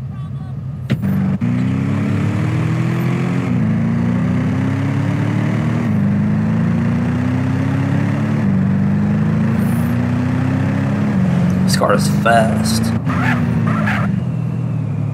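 A car engine revs up and shifts through gears again and again.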